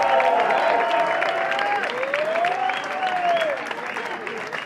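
A crowd cheers and whistles loudly.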